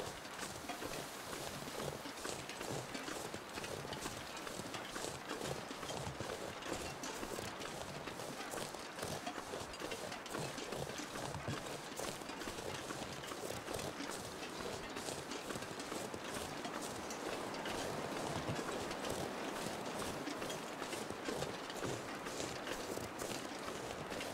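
Wind blows steadily in gusts outdoors.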